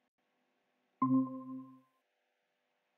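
A short electronic chime sounds from a call app.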